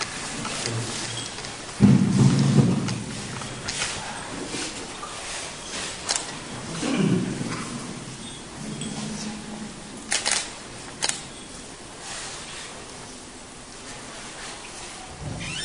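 A man reads aloud in a steady voice in an echoing hall.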